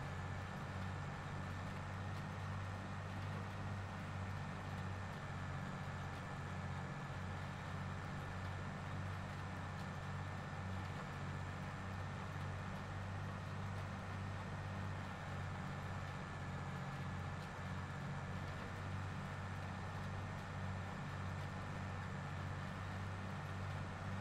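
Tyres roll over the ground.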